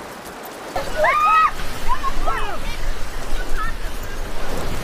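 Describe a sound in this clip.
A young woman laughs and shouts nearby outdoors.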